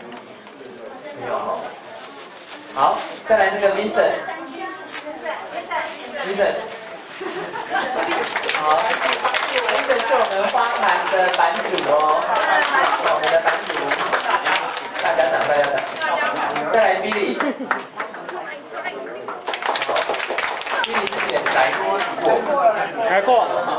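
A crowd of men and women chatter and laugh.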